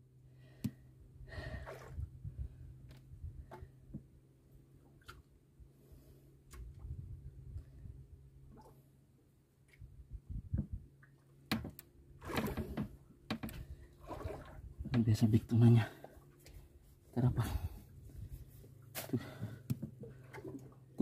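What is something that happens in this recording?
Waves splash against the side of a boat.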